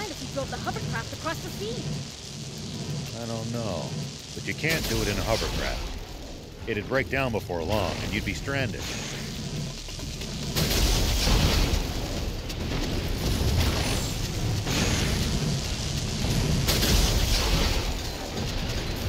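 Heavy gunfire bursts out in rapid, loud blasts.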